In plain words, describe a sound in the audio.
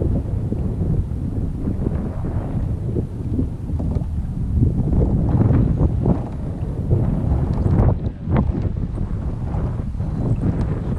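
Water laps and splashes against a small boat.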